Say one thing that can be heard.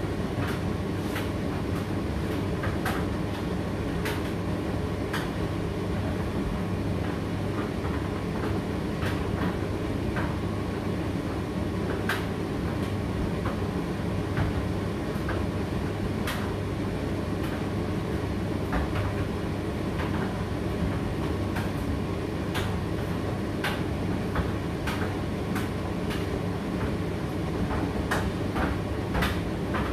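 A condenser tumble dryer runs with a low, steady hum and drone.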